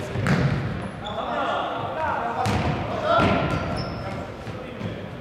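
Shoes squeak sharply on a wooden floor in a large echoing hall.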